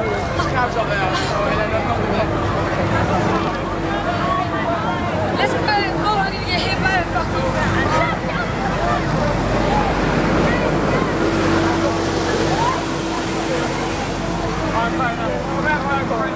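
Several people chatter nearby on a busy street.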